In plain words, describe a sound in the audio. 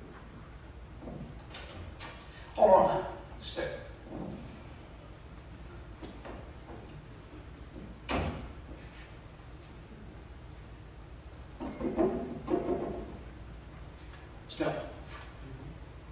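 Men speak in short bursts, heard from a distance in a large room.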